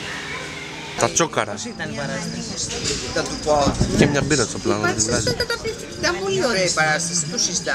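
An elderly woman talks animatedly on a phone, close by.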